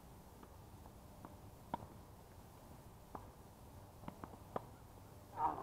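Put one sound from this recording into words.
Tennis balls pop off racquets in a rally outdoors.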